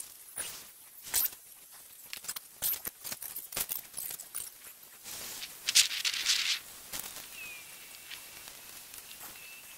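A large plastic sheet rustles and crackles in the wind outdoors.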